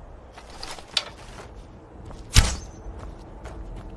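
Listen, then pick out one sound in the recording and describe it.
A bow string is drawn and an arrow is loosed with a sharp twang.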